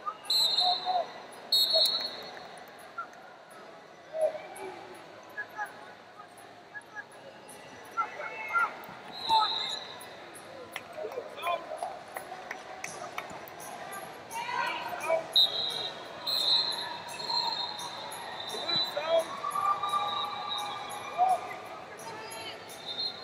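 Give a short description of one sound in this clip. Wrestling shoes squeak on the mat.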